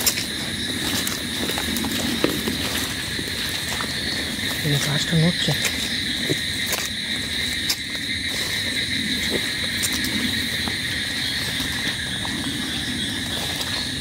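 Footsteps crunch on leaves and undergrowth.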